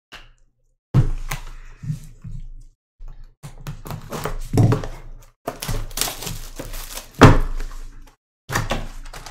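Cardboard boxes rustle and knock as they are handled.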